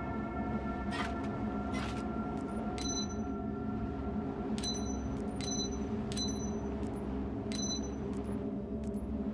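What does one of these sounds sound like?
Game interface clicks sound as items are picked up and moved.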